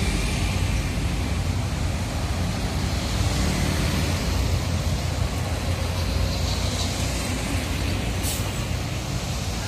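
A large bus engine idles with a deep rumble close by.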